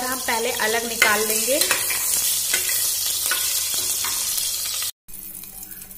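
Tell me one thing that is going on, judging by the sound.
Hot oil sizzles and crackles loudly.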